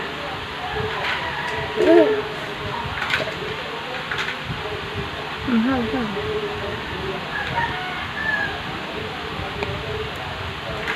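A spoon clinks against a plastic bowl.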